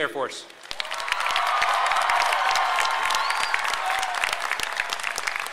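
A large outdoor crowd cheers loudly.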